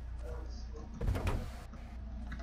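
Cardboard boxes thud and tumble.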